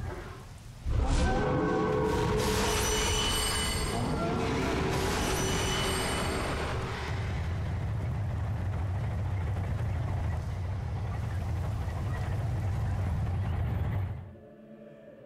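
A deep, loud rumble roars steadily and then cuts off.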